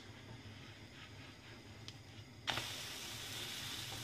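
A spatula scrapes against a frying pan.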